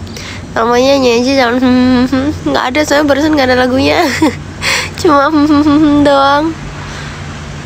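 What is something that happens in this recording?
A young woman speaks in a high, sing-song voice close by.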